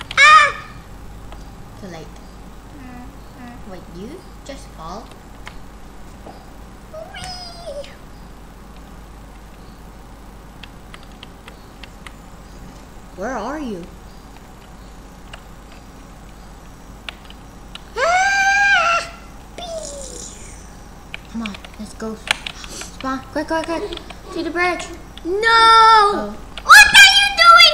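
A young boy talks excitedly close to a microphone.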